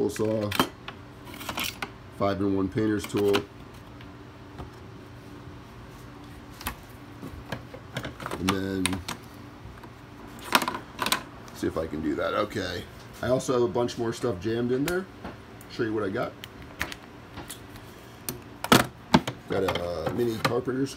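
Metal hand tools clink and rattle as they are picked up and put back.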